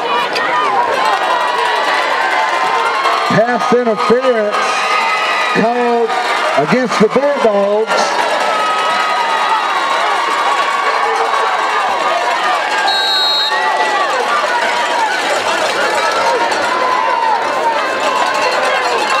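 A large crowd cheers and chatters outdoors throughout.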